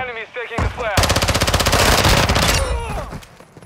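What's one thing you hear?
A submachine gun fires a rapid automatic burst.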